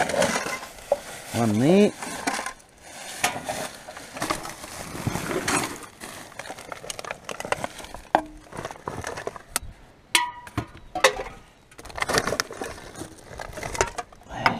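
Plastic bags rustle and crinkle as a gloved hand digs through rubbish.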